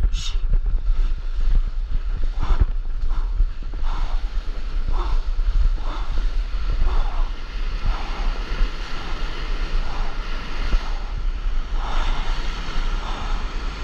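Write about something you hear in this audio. A paddle dips and pulls through the water.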